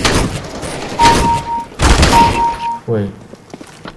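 Gunshots crack in quick bursts.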